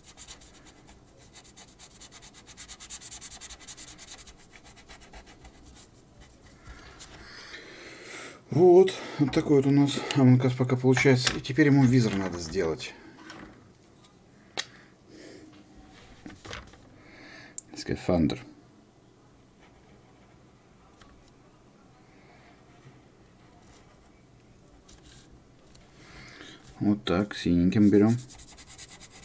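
A felt-tip marker scratches softly across paper.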